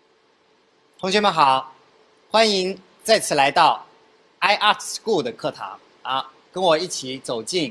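A young man speaks calmly and warmly into a microphone.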